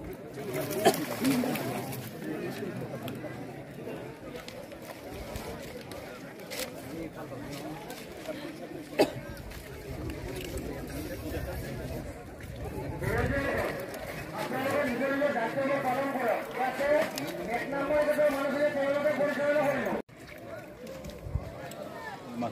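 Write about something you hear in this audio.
A crowd of men chatters and calls out loudly outdoors.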